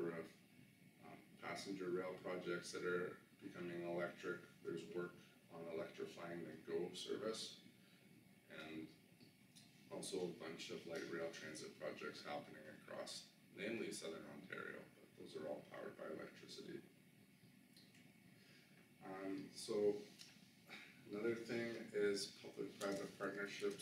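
A man speaks calmly, lecturing through a microphone.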